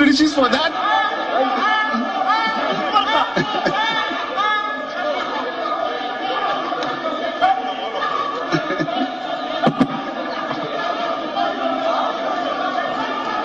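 A crowd of men shout and argue loudly.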